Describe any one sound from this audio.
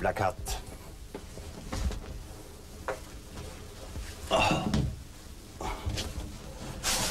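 A mattress thumps and scrapes against a floor.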